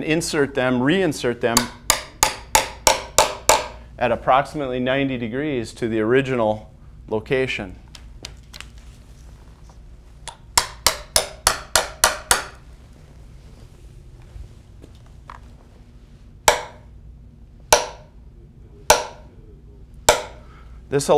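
A man taps a wooden post with a small hammer in quick, sharp knocks.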